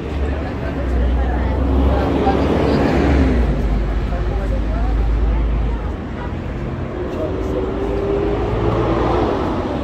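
A crowd of people chatters at a distance along a busy street.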